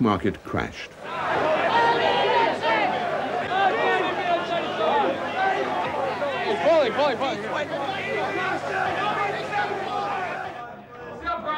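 A large crowd of men shouts over one another.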